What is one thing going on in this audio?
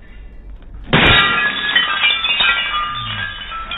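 A glass bulb shatters with a loud crash.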